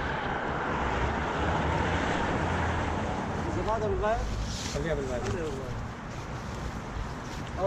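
Wind buffets the microphone loudly.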